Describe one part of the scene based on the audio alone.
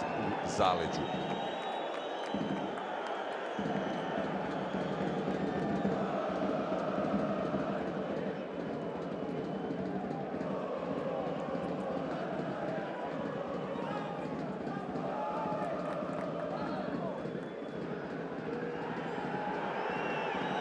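A crowd chants steadily in a large open stadium.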